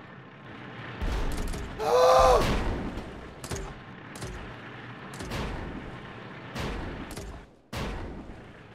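Game explosions boom and crack.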